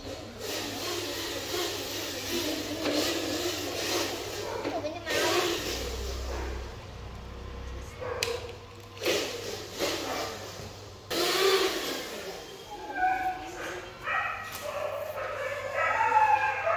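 A small electric motor whirs as a toy truck rolls across a hard floor.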